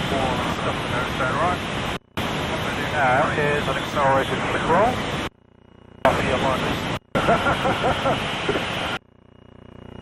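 A man speaks with animation through a headset microphone over an intercom.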